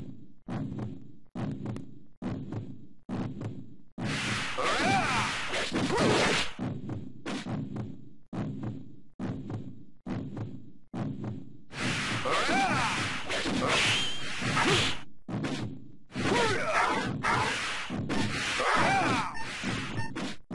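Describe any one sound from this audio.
Swirling magic sound effects whoosh and crackle in bursts.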